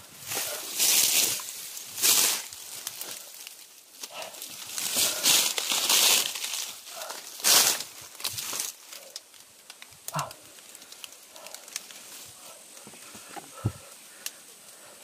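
Leaves and fronds rustle and brush loudly against someone moving through dense undergrowth.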